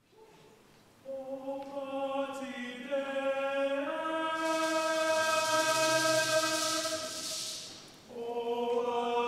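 A choir sings in a large, echoing hall.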